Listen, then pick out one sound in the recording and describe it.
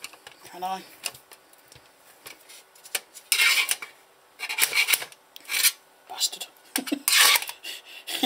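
A screwdriver scrapes and clicks against metal.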